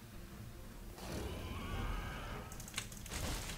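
A large beast growls loudly.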